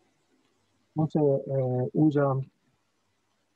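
A middle-aged man speaks briefly and calmly over an online call.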